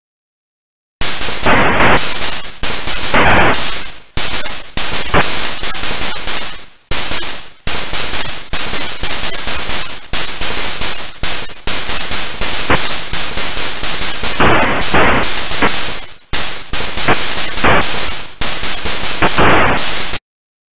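Electronic laser shots from a retro video game fire rapidly and harshly.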